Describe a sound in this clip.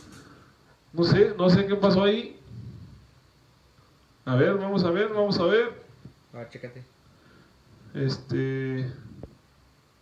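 A young man speaks with animation close to a microphone, in short bursts.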